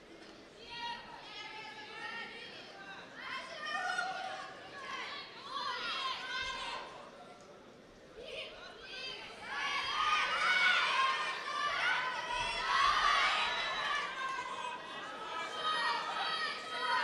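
Spectators shout encouragement in a large echoing hall.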